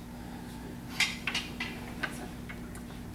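Wooden staffs clack together sharply several times.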